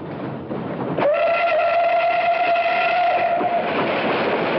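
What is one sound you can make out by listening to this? A steam train whistle blows loudly and steadily.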